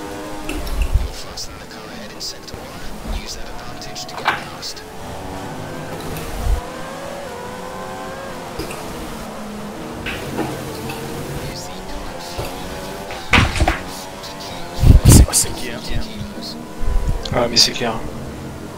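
A racing car engine whines and revs up and down through the gears.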